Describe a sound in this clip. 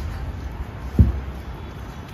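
A cup knocks against a glass table.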